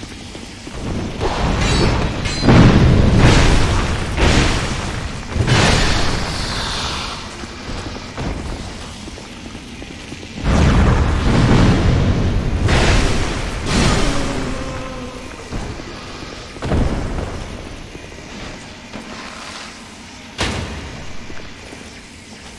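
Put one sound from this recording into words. A heavy sword whooshes through the air.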